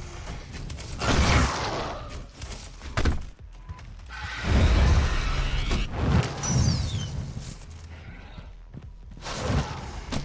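A shotgun fires loud, booming blasts again and again.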